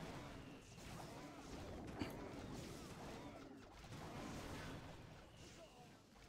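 Game explosions boom and crackle continuously.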